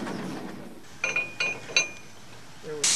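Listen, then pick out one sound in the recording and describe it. Heavy chain links clank together.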